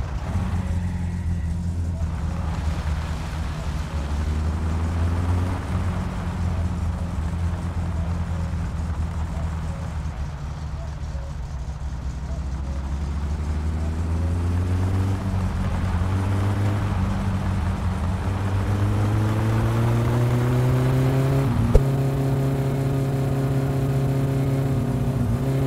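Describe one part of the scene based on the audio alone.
A car engine hums and rises and falls in pitch as the car speeds up and changes gear.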